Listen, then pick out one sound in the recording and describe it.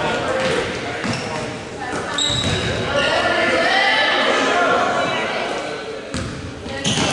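A basketball bounces on a hard court in an echoing gym.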